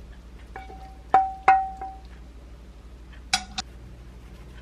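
A pan and a serving spoon clink against a ceramic plate.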